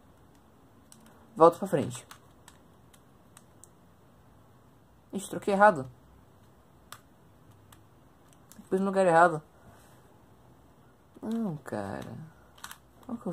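A puzzle cube clicks and rattles as its layers are twisted quickly.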